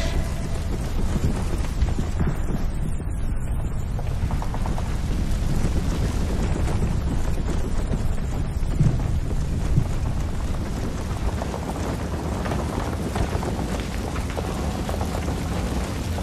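Gunfire rattles steadily throughout.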